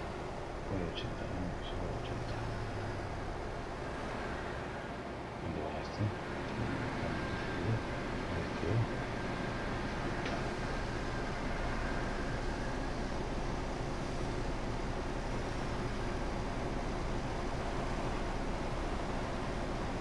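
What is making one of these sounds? Tyres roll on the road surface with a steady rumble.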